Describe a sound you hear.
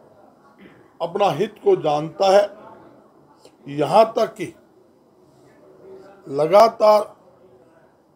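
A middle-aged man speaks with animation into microphones at close range.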